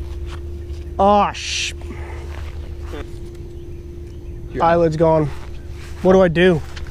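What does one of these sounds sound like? A young man talks casually nearby, outdoors.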